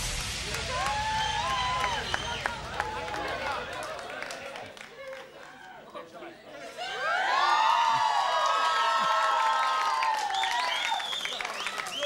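An audience cheers and whoops loudly.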